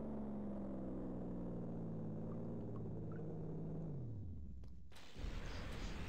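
A low machine hum drones steadily, then slides down in pitch and dies away.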